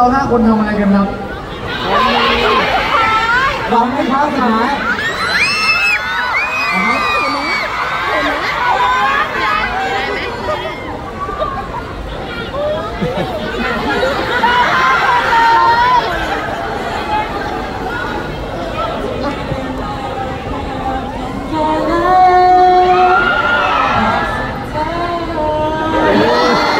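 Young men talk with animation through microphones over a loudspeaker.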